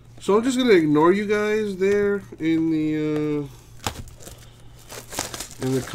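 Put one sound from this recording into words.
Plastic wrap crinkles and tears as it is pulled off a box.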